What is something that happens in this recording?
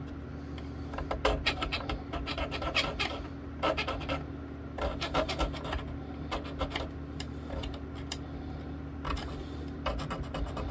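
A small file scrapes in short strokes across guitar frets.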